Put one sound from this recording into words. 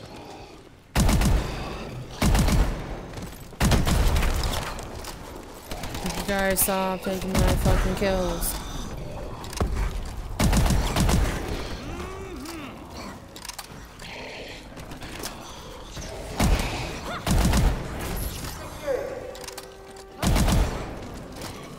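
A gun fires in short, loud bursts.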